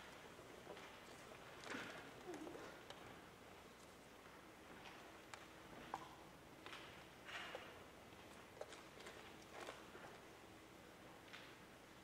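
An audience rustles and coughs quietly in a large hall.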